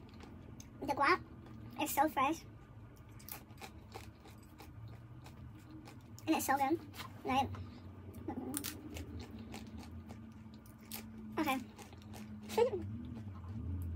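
A young woman crunches crisp chips close to a microphone.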